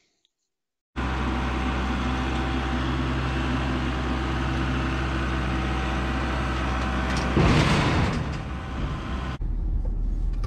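A tractor engine runs steadily nearby.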